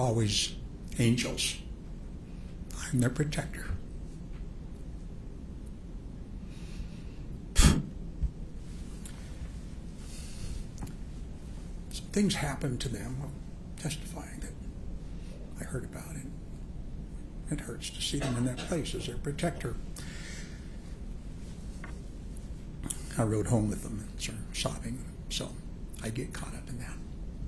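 A middle-aged man speaks calmly into a microphone in bursts, with pauses between.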